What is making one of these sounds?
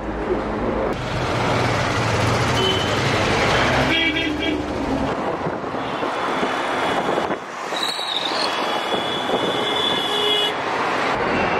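Traffic rushes past outside.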